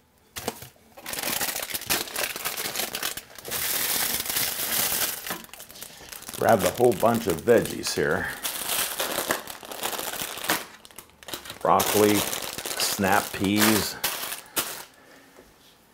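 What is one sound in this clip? Plastic bags crinkle and rustle.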